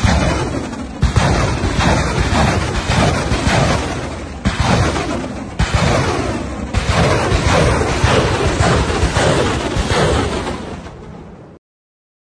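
Rockets launch one after another with loud roaring whooshes.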